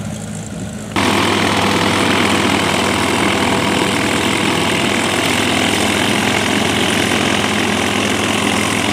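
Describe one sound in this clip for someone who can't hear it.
A propeller plane's engine roars loudly outdoors.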